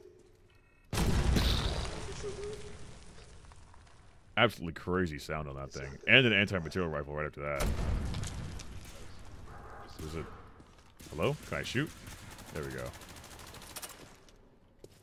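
Loud gunshots bang and echo.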